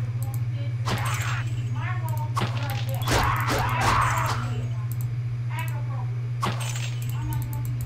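Sword strikes clash and thud.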